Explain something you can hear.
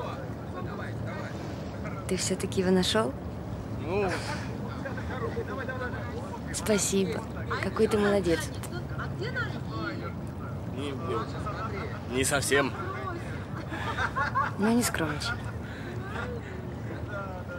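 A young man speaks quietly and earnestly close by.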